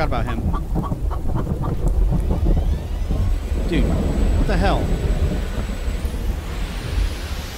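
A car engine rumbles steadily while driving.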